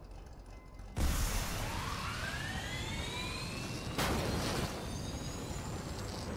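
A car engine revs up, rising in pitch.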